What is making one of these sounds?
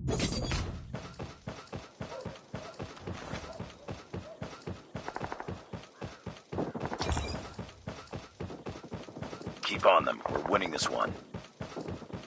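Footsteps patter quickly and steadily.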